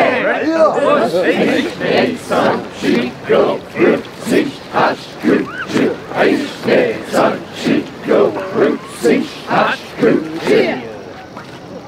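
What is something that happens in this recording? A group of men and women shout together in rhythm, outdoors.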